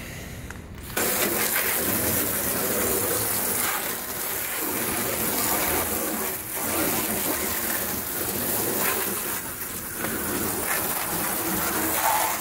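A hose nozzle sprays water hard into an empty plastic bin with a steady hiss.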